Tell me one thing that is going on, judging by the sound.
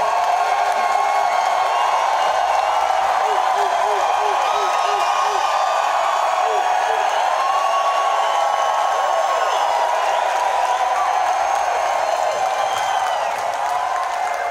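A large crowd cheers and whistles loudly in a big echoing hall.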